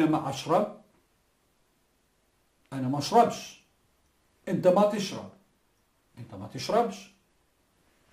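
A middle-aged man speaks with animation into a close microphone, in short phrases.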